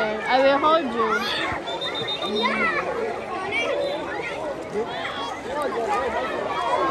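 Children and adults shout and chatter in a pool.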